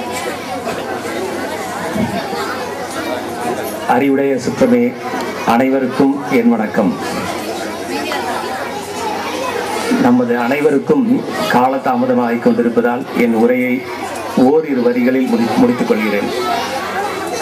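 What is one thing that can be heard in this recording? A man speaks with animation into a microphone, heard through a loudspeaker outdoors.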